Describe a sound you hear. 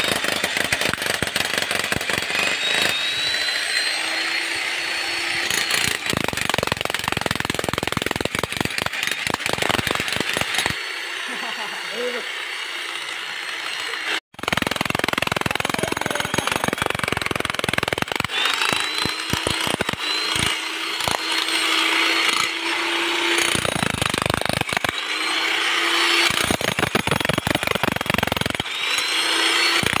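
A jackhammer pounds rapidly into concrete.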